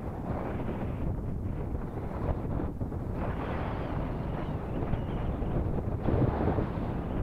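Waves lap and splash against rocks.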